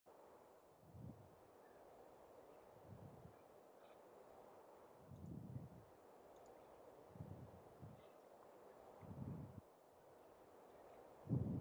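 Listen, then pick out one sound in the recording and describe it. A young man murmurs quietly close to a microphone.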